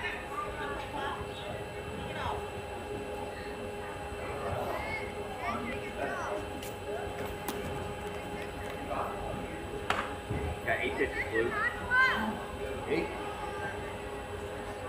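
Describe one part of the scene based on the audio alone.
Young players shout and call out across an open outdoor field.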